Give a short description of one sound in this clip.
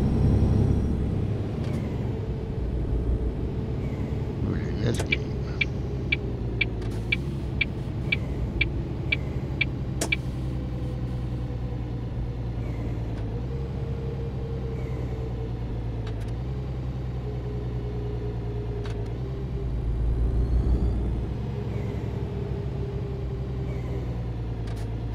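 A truck engine rumbles steadily as the truck slows down.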